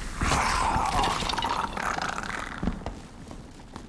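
A burst of smoke hisses loudly, then fades.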